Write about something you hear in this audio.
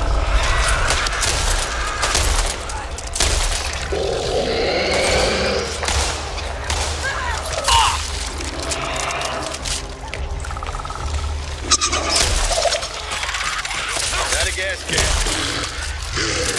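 Zombies snarl and growl close by.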